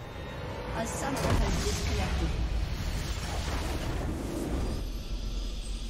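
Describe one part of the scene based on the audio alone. A game structure explodes with a deep rumbling blast.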